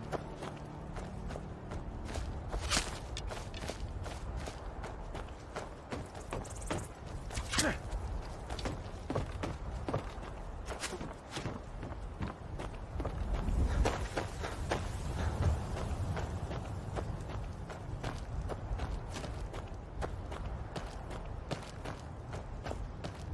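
Footsteps crunch on dirt and thump on wooden planks.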